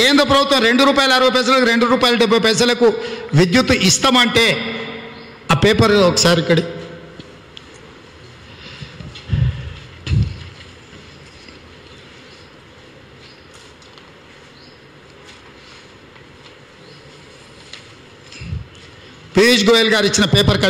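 A man speaks forcefully into a microphone, heard through a loudspeaker.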